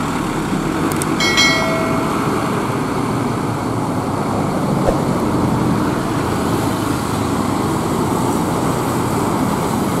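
A diesel coach bus pulls away.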